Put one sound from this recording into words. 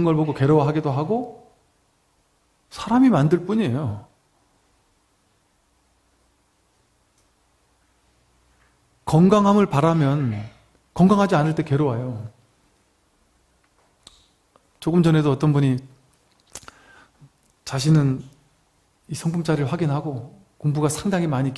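A middle-aged man speaks calmly into a microphone, pausing between phrases.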